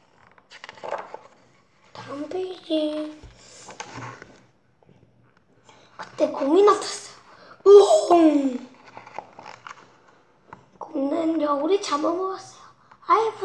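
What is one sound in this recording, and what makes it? A young boy reads aloud slowly, close by.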